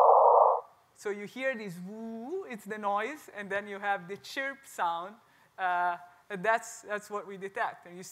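A woman speaks with animation to a room, heard through a microphone.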